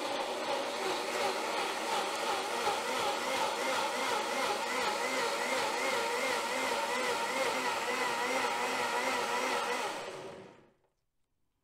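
A blender whirs loudly, its motor warbling steadily, then stops.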